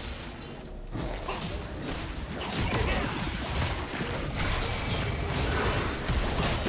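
Blows and spell impacts thud again and again.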